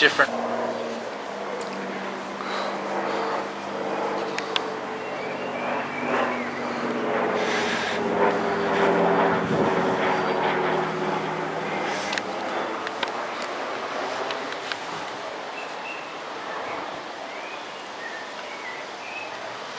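A small plane's engine drones overhead, growing louder and then slowly fading.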